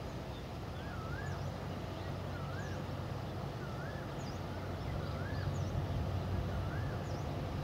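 A diesel locomotive rumbles low as it slowly approaches and grows louder.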